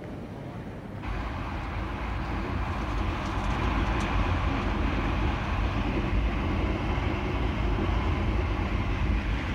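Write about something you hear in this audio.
A train rumbles steadily and low.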